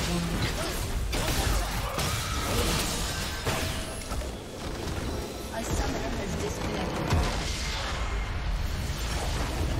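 Magic spells and weapon attacks crackle and clash in a fast video game battle.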